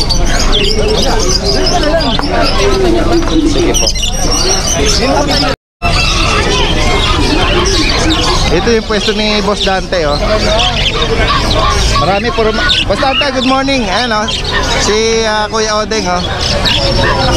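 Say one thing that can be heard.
Many caged birds chirp and squawk close by.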